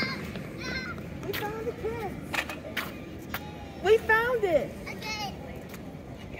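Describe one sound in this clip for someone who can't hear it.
A young child calls out in a high voice outdoors.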